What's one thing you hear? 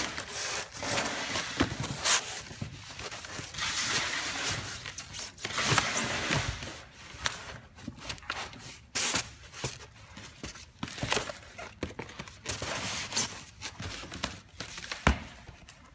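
Cardboard scrapes and bumps.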